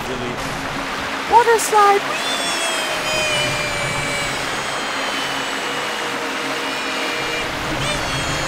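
Footsteps splash while wading through shallow water.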